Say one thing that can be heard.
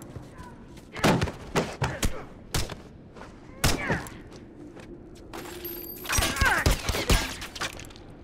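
Heavy blows land with loud thuds in a close struggle.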